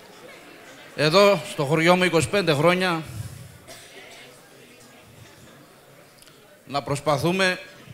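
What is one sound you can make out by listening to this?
A man speaks with emotion into a microphone.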